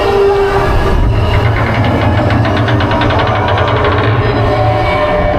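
A lift chain clacks rapidly as a roller coaster climbs.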